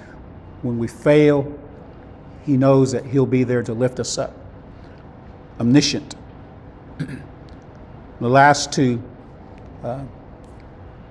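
A middle-aged man speaks calmly and with pauses into a clip-on microphone.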